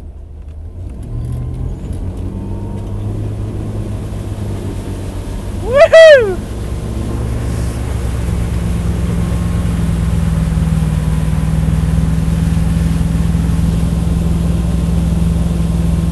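Water rushes and splashes behind a boat.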